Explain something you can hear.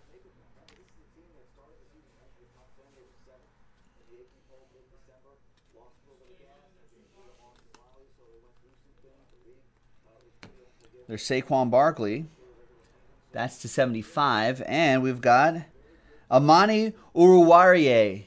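Playing cards slide and rustle against each other in hands.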